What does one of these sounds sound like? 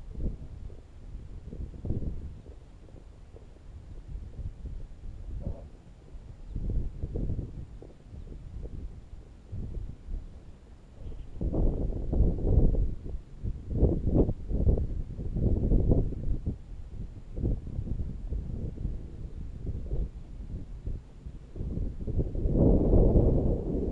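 Wind buffets and rumbles loudly outdoors.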